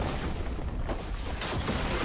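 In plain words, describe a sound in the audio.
Magic blasts and hits crackle during a fight.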